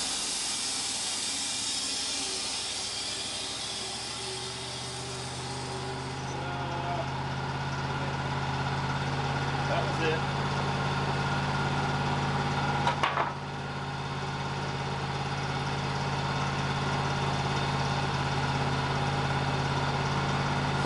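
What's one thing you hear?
A sawmill engine hums steadily.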